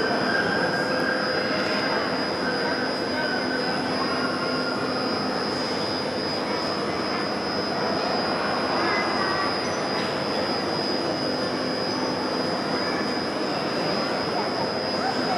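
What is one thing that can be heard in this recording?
A crane hoist hums steadily in a large echoing hall.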